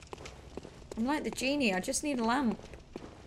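A young woman speaks briefly in a sing-song voice into a microphone.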